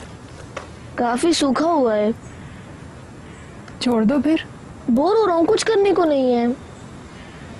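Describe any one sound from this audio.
A boy speaks nearby.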